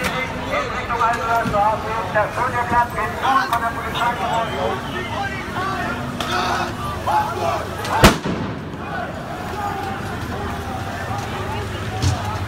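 A crowd of men and women shout and talk excitedly nearby.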